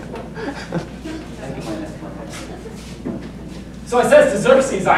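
A young man speaks loudly on stage in a hall with some echo.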